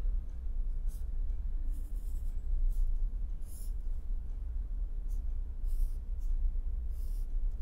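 A marker pen squeaks and scratches on paper in short strokes.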